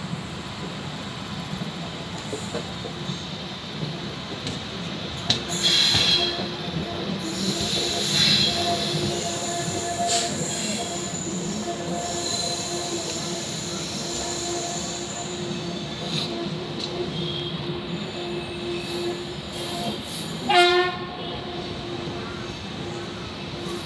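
A train rumbles steadily along the tracks with wheels clattering on rails.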